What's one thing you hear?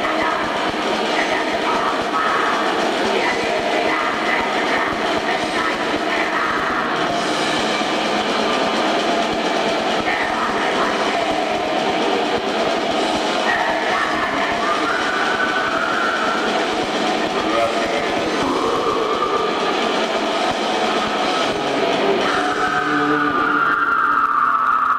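A drummer pounds a drum kit fast.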